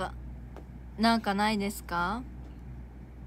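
A second young woman speaks briefly close by.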